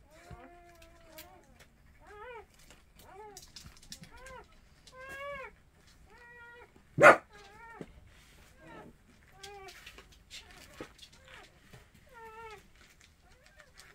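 Newborn puppies whine and squeal in high, rising cries, again and again, close by.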